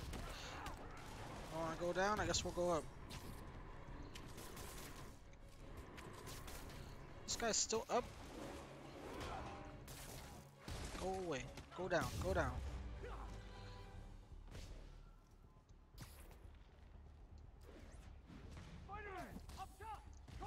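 Punches and kicks thud during a fight.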